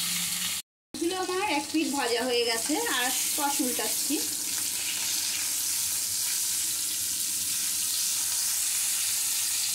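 A spatula scrapes and turns pieces of fish in a pan.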